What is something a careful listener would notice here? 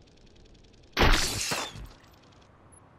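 A gun fires a short, loud burst.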